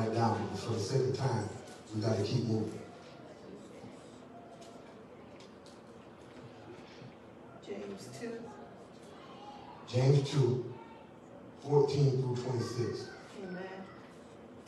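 A man speaks through a microphone in a large hall, in bursts with long pauses.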